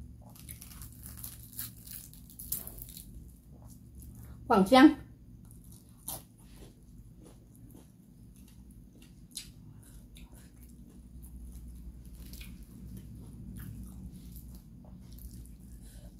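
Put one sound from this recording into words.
A woman chews and smacks her lips loudly close by.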